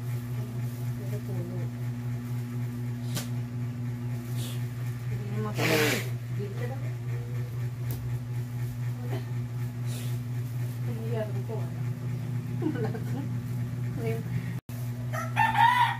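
Electric hair clippers buzz steadily close by.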